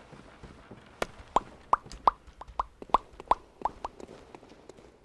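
Footsteps tap on stone at an even pace.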